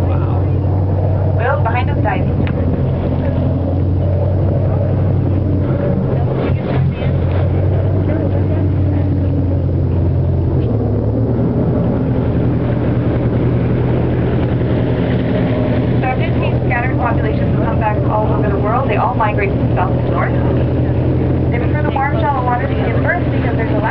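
A boat's motor drones steadily.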